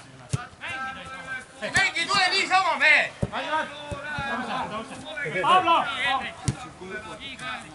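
Men shout to each other across a football field outdoors.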